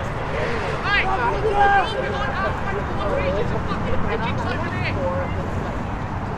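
Players shout to each other in the distance on an open field.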